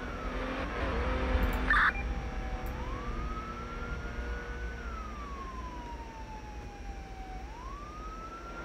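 A police SUV drives along a road and slows down.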